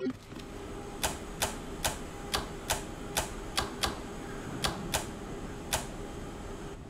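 Switches click one after another.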